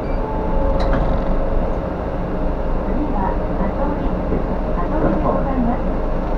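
A bus engine rumbles steadily from inside as it drives along.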